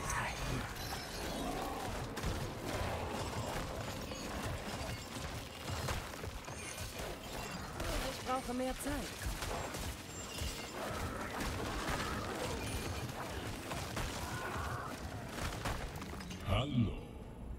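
Game combat sounds of blows, spells and monster cries clash and crackle.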